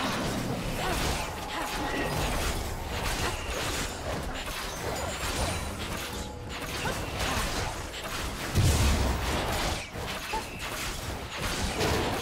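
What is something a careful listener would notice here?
Magic spells whoosh and crackle in a fast fantasy battle.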